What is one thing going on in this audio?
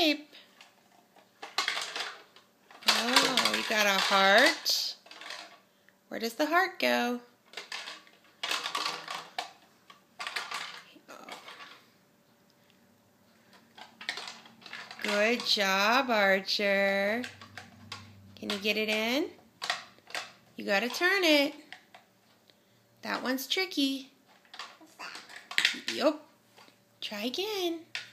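Plastic toy pieces clack and rattle.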